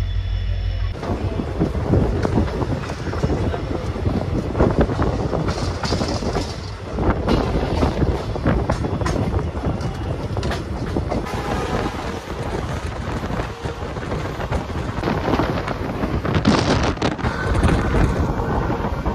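A train rattles and rumbles along the tracks.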